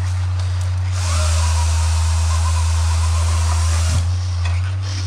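A chainsaw revs loudly for a few seconds, then drops back.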